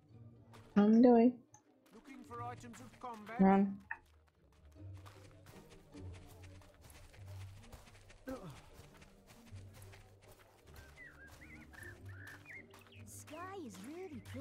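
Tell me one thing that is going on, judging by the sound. Footsteps patter on grass and stone paths.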